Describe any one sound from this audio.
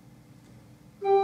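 An organ begins to play a loud chord in a large echoing hall.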